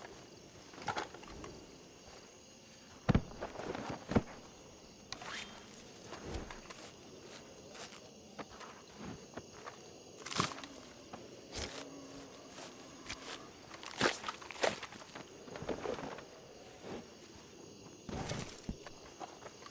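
A knife cuts and tears through an animal carcass with wet squelching sounds.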